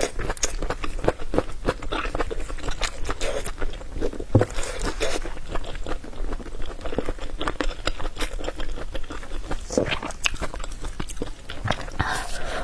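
A young woman chews loudly and wetly close to a microphone.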